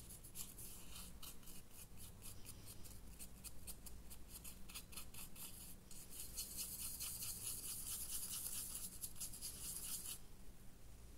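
A paintbrush scratches and dabs quickly against a small hard surface.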